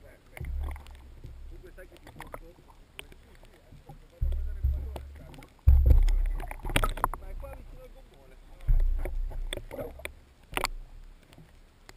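Water surges underwater in low, muffled thumps and rushes.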